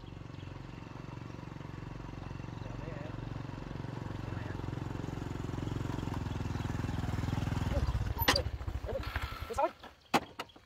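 A motorbike engine approaches and grows louder, then cuts out.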